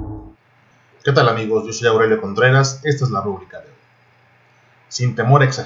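A middle-aged man talks calmly into a computer microphone.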